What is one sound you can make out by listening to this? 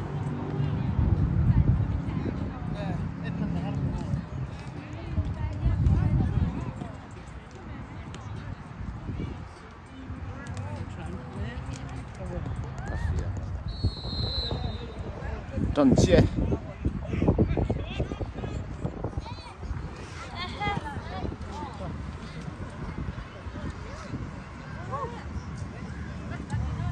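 Young players shout to each other across an open field, far off.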